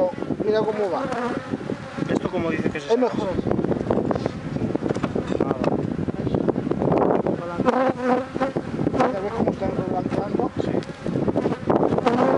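Bees buzz close by.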